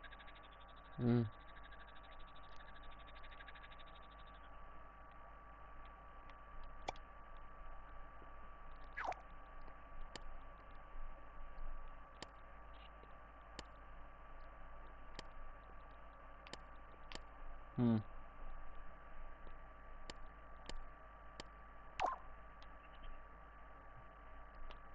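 Soft game menu clicks and blips sound now and then.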